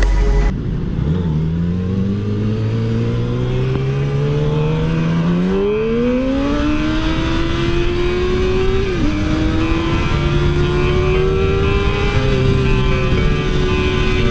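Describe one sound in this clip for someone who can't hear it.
A motorcycle engine revs up and climbs through the gears, then drones steadily.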